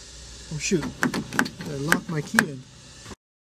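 A car door handle clicks as it is pulled.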